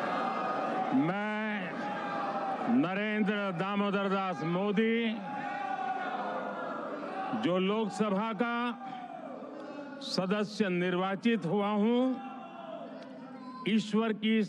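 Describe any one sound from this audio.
An elderly man recites formally through microphones.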